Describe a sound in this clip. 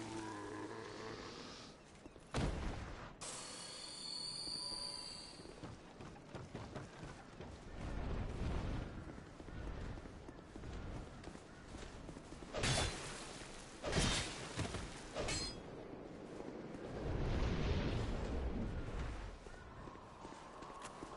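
Footsteps clatter on stone.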